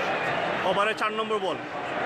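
A cricket bat strikes a ball with a sharp crack.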